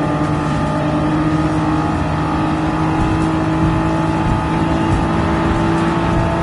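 Tyres hum on the road at speed.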